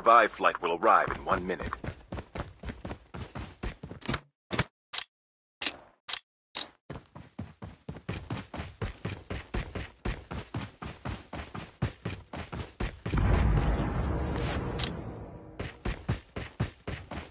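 Footsteps patter quickly and steadily over rough ground.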